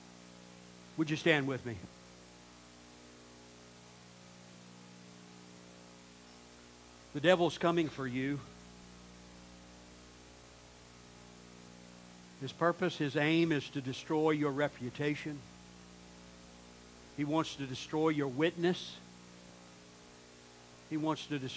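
A man speaks slowly through a microphone, with long pauses.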